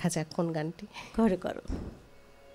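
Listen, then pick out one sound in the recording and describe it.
A woman laughs into a microphone.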